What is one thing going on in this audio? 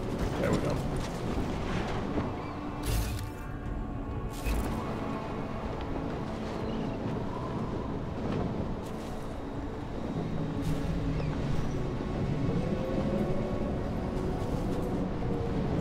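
Soft footsteps shuffle as a figure creeps along.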